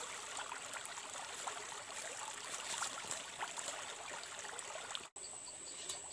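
Water trickles and splashes along a shallow stream.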